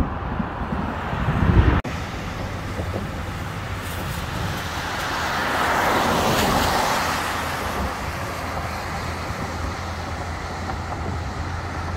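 Tyres hiss steadily on a wet road.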